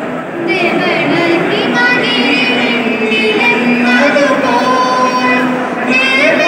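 A group of young men and women sing together through loudspeakers in a large echoing hall.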